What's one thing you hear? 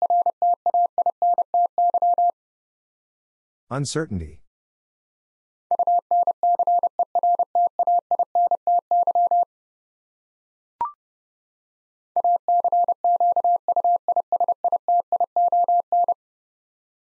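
A Morse code key beeps out quick, steady tones in short bursts.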